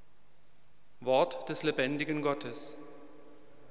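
A man chants through a loudspeaker in a large echoing church.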